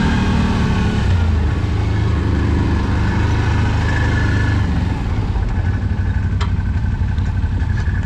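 An off-road vehicle engine rumbles steadily close by.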